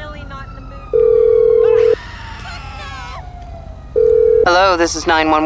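A phone rings on the line.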